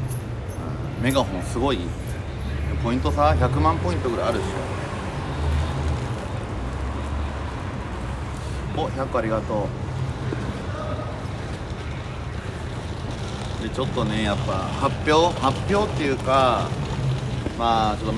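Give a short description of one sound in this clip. A young man talks casually, close to the microphone.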